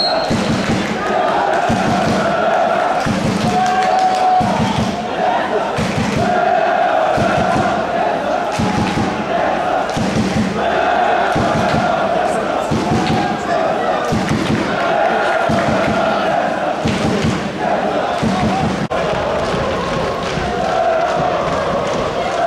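A crowd of fans chants rhythmically in the stands, heard from a distance.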